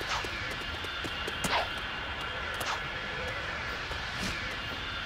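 A swirling vortex hums and whooshes steadily.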